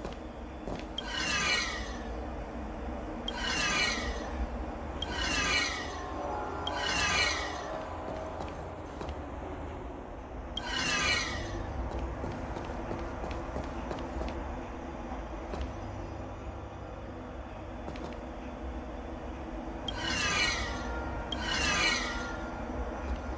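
A game device turns with a short, falling electronic swoosh, several times over.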